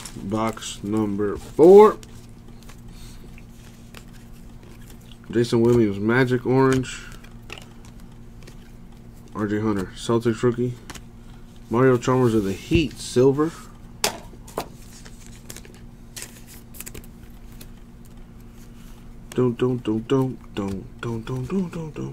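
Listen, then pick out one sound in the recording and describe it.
Trading cards rustle and flick against each other.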